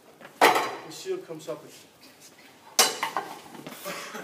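Wooden shields and blades clash with loud sharp knocks in an echoing hall.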